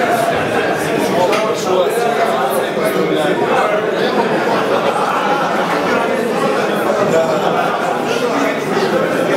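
A crowd of people chatter loudly in a room.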